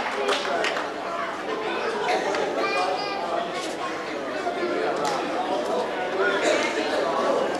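A crowd of young men and boys chatters and calls out all around in a large echoing gym.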